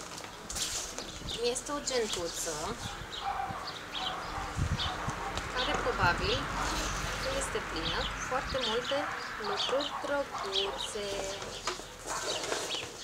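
A young woman talks calmly and close by.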